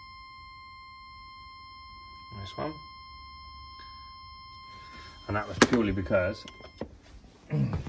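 An electronic tester beeps with a steady high tone.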